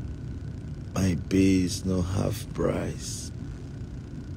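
A young man speaks briefly and calmly, close to a phone microphone.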